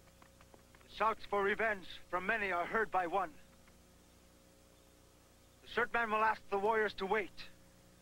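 A man speaks loudly and with emphasis, close by.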